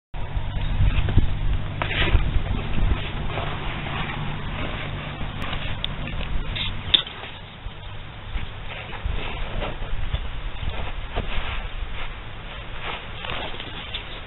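A bull rubs its head and scrapes at loose dirt.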